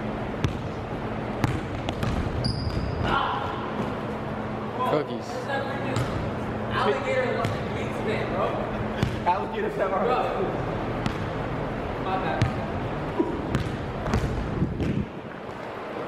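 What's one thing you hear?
A basketball bounces on a hardwood court with echoing thuds.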